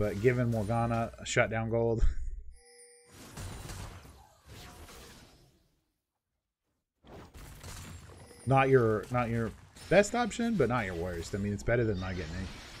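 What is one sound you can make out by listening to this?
Video game spells and attacks crackle and whoosh in a battle.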